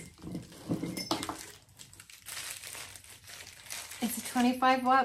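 Paper rustles and crinkles as it is unwrapped.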